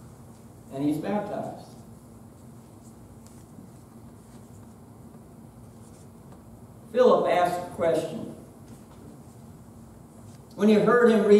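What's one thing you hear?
A man speaks calmly in short bursts, with long pauses between phrases.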